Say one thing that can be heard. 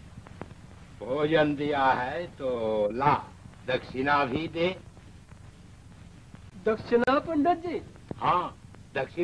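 A man speaks with animation, heard through an old, hissy recording.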